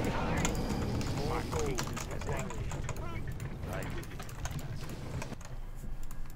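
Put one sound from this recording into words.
Battle sound effects clash and crackle from a game.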